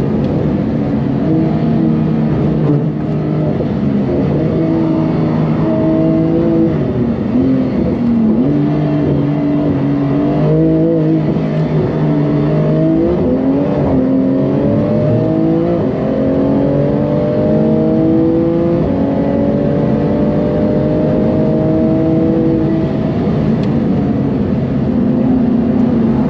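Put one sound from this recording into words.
A car engine roars loudly, revving up through the gears and dropping as it slows for bends.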